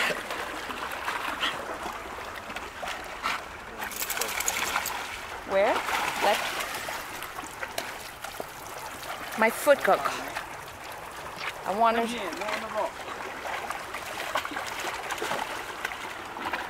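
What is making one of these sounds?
Water laps and splashes against rocks.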